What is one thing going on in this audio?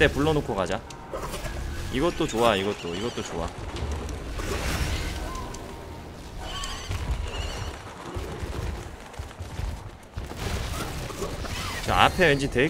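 A large creature's claws strike with heavy thuds.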